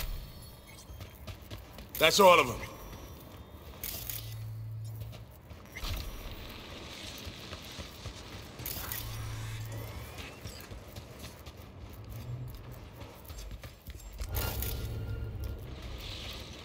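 Footsteps walk across a hard floor.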